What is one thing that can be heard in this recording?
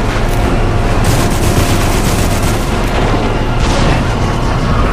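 Explosions boom and crash.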